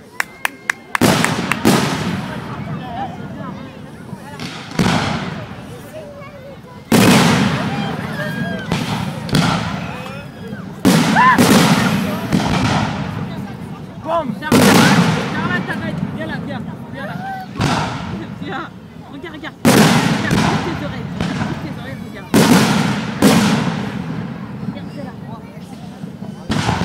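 Fireworks burst with loud booms that echo and rumble away.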